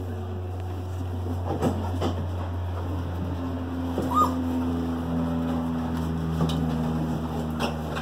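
A puppy tugs and chews on a squeaky plush toy.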